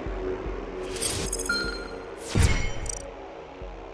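A game chime rings as a reward counts up.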